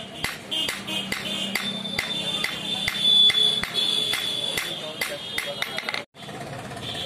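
A hammer strikes hot metal on an anvil in quick, ringing blows.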